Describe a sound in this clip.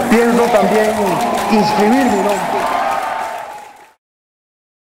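A crowd applauds in a large echoing hall.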